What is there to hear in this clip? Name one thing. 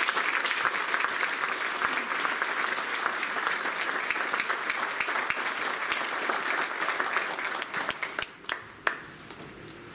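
An audience applauds loudly in a large echoing hall.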